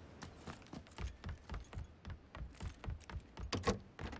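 Footsteps thud heavily on wooden stairs.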